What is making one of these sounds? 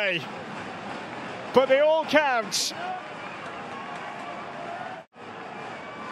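A large crowd cheers and chants in an open stadium.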